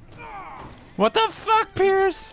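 A man groans loudly in pain.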